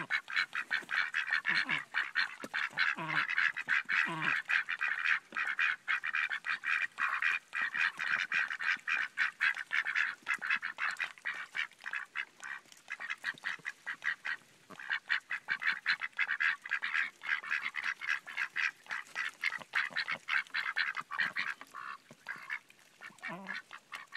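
Ducks quack rapidly and chatter close by.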